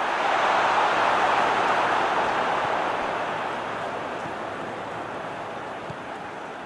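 A stadium crowd roars steadily and slowly fades.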